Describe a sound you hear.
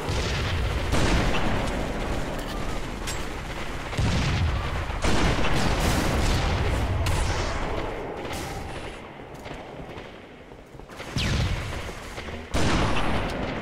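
Rifle shots crack loudly.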